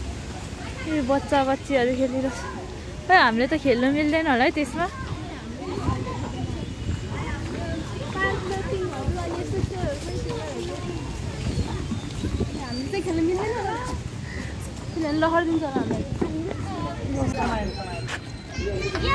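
Children shout and chatter outdoors.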